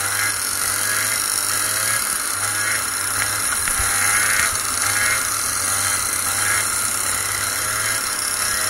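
Other kart engines whine nearby.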